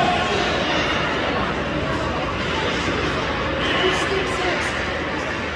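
Young players call out in a large echoing rink.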